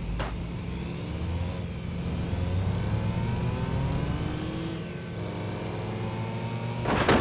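A small truck engine revs up and down as it speeds along.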